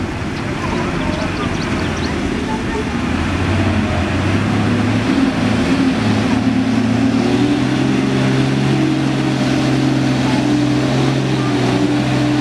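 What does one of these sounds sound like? A heavy truck engine labours and revs as it climbs through mud.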